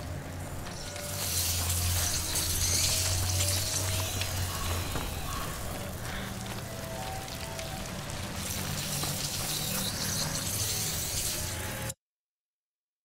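A fire crackles close by.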